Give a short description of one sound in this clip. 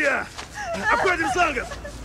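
A young woman pants heavily as she runs.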